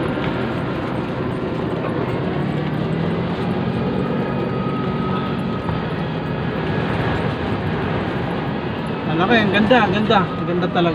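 A car engine hums steadily as tyres roll over a smooth road.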